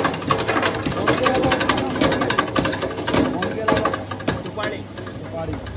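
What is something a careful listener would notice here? Grain patters and rattles down a metal hopper.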